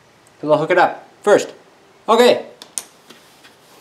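Plastic connectors click as they are pushed together.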